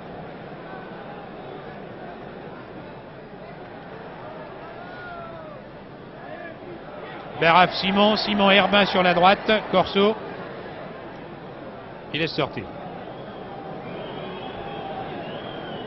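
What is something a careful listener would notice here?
A large crowd murmurs in the distance.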